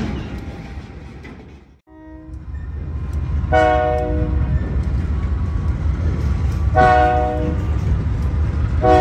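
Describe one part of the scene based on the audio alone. Train wheels clatter along the tracks.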